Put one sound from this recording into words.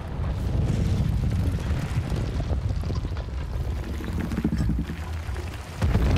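Stones grind and crunch as a huge stone giant moves.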